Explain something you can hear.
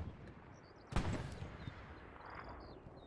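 An explosion booms in the distance and rumbles away.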